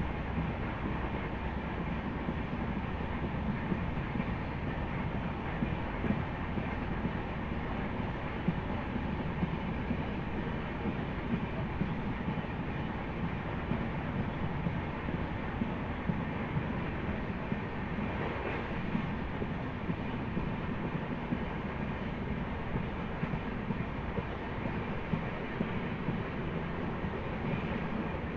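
A train rumbles along the tracks at speed.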